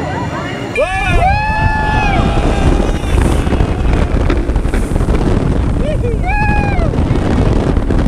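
Men on a roller coaster shout and scream up close.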